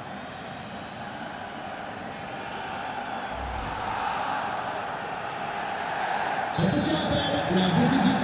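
A large stadium crowd roars and murmurs steadily, slowly growing louder.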